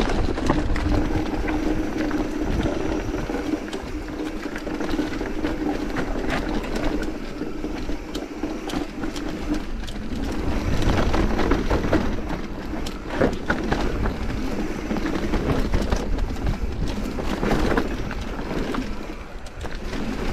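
Bike tyres crunch and rattle over a rough dirt trail.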